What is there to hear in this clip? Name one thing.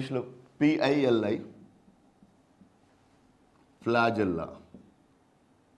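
A man speaks calmly and clearly into a microphone, in short phrases.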